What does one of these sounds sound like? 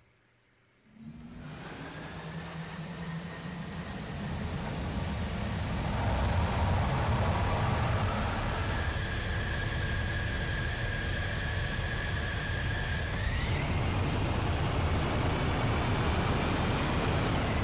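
A jet engine starts up and roars louder, with a rising whine.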